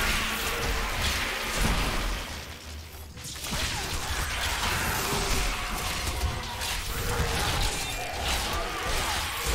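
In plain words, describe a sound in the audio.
Game combat sound effects clash and burst.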